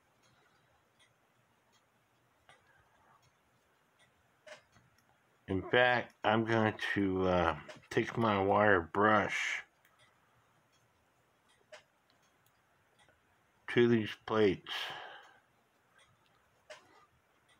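Small metal clock parts click softly as they are handled.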